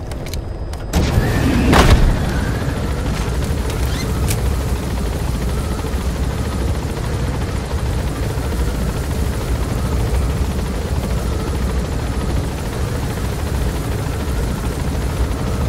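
Wind rushes loudly through an open helicopter door.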